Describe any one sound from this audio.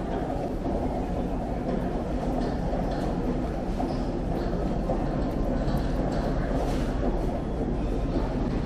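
Suitcase wheels roll along a hard floor.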